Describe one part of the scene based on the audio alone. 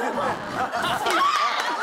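A young woman exclaims playfully nearby.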